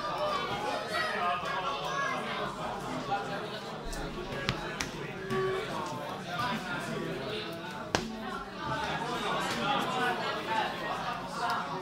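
Playing cards rustle as they are shuffled by hand.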